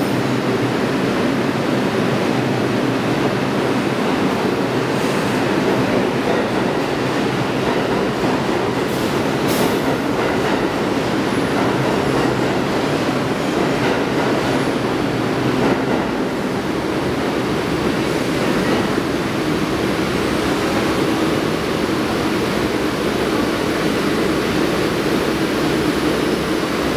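Train wheels rattle and clatter over the rails.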